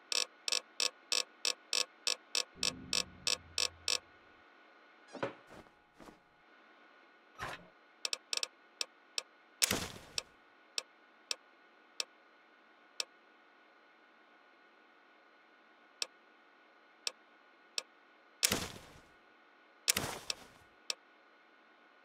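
Short electronic clicks tick as a menu is scrolled.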